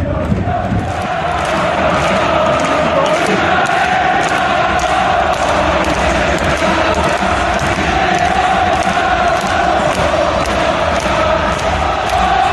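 A huge stadium crowd sings together, echoing across the stands.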